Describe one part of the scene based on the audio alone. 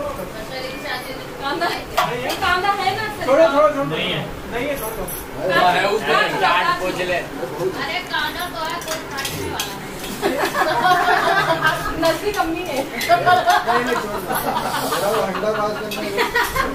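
Several adults and children talk and chatter nearby in a small room.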